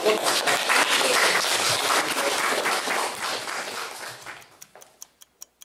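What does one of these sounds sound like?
A man speaks aloud to a room.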